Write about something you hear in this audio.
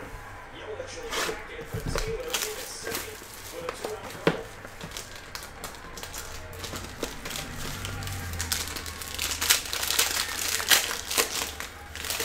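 Plastic shrink wrap crinkles as it is torn off a box.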